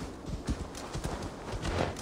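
A horse's hooves crunch on snow.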